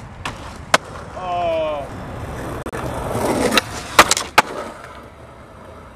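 Skateboard wheels roll over concrete.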